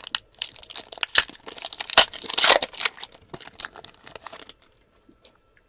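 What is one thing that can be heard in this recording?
Foil wrapping crinkles and tears as a pack is opened.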